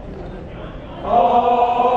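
A mixed choir begins to sing.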